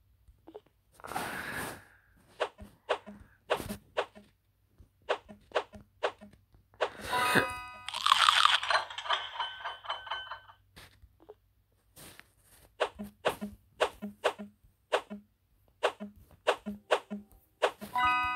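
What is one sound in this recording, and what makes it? Short soft pops sound as game pieces flip onto each other.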